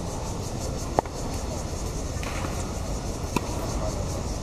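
Tennis balls are struck with rackets outdoors.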